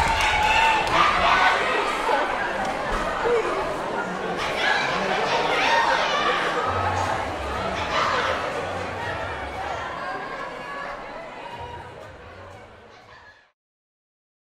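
A young man speaks into a microphone, heard over loudspeakers in a large echoing hall.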